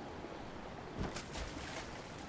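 Water splashes as something drops into it.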